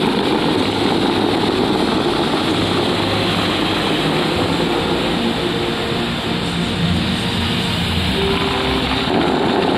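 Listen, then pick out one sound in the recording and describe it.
Fountain jets spray and splash steadily into a pool outdoors.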